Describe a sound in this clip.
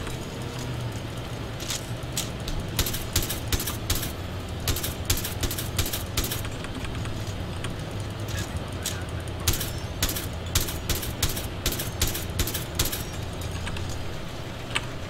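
A heavy engine rumbles steadily.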